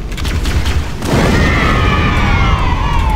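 An explosion booms and roars, then rumbles on.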